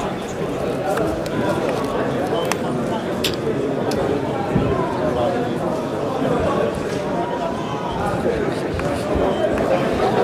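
A crowd of people chatter and call out in a large echoing hall.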